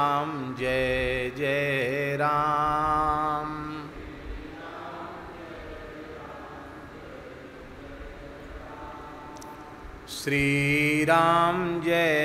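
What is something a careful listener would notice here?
A man chants in long, drawn-out tones into a microphone, pausing quietly in between.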